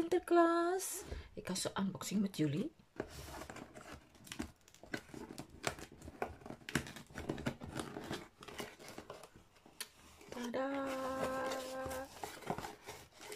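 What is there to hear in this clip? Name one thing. Hands rustle and scrape a cardboard box while opening it.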